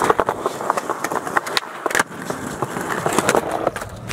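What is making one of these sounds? Skateboard wheels roll and clack on pavement.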